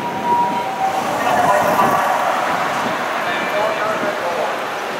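A fire engine siren wails as it approaches.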